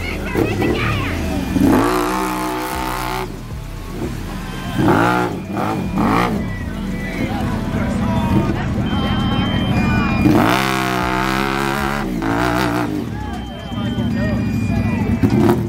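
An engine revs hard and rises and falls in pitch.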